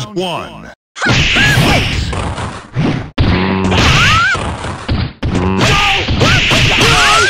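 Punches and kicks land with sharp hits.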